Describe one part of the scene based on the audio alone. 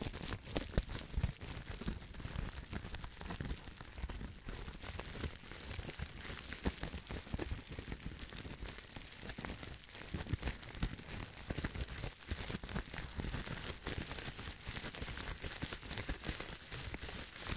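Bubble wrap crinkles and crackles close up.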